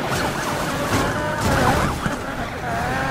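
A car crashes hard with a loud metallic impact.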